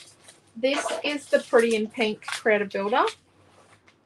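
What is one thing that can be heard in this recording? Paper rustles as a sheet is laid on a table.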